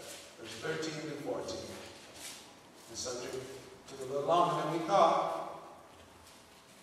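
A man speaks slowly and solemnly into a microphone, close by.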